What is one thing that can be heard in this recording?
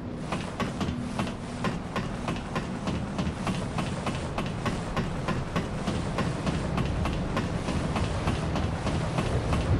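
Hands and feet clank on a metal ladder while climbing.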